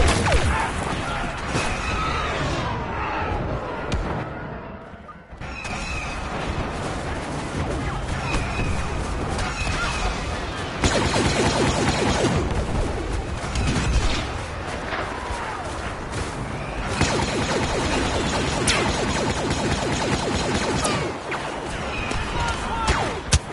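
Heavy battle noise rumbles steadily.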